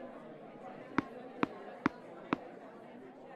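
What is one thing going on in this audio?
A tennis ball bounces on a hard court several times.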